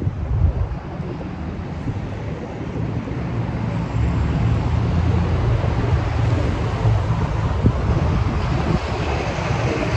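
Cars drive by along a quiet street.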